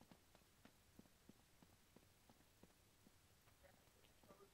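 Footsteps tap quickly on a stone floor.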